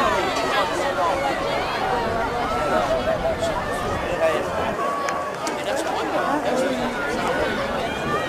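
A crowd of spectators chatters and cheers outdoors nearby.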